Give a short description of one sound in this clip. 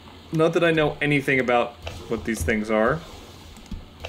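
A wooden drawer slides open.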